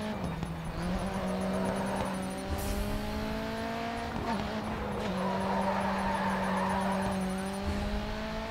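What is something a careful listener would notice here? Tyres screech as a car slides through corners.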